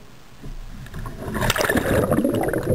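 Water churns and splashes loudly close by.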